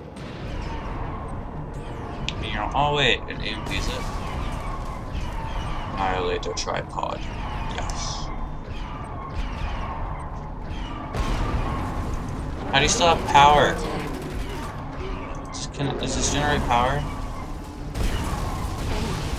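Laser weapons zap and crackle in a game battle.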